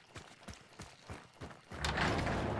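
Footsteps crunch steadily on dirt.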